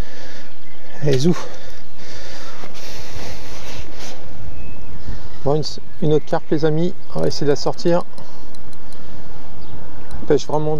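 A man speaks calmly close by, outdoors in wind.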